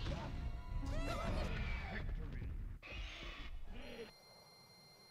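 Video game dinosaurs roar and screech as they fight.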